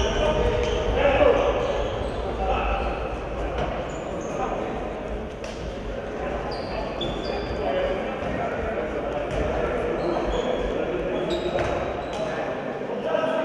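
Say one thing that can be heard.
A ball thumps against the floor and walls.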